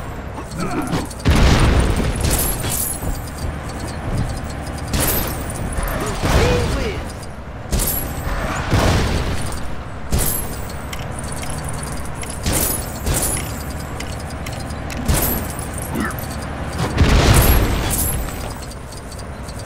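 Plastic bricks clatter and scatter as objects smash apart.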